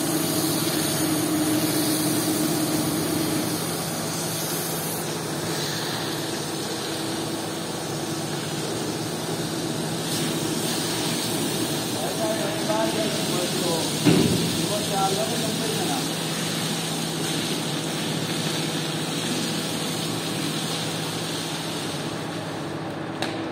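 A strong jet of water hisses and splashes onto a wet floor.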